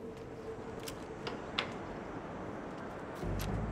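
A wooden door swings open with a click.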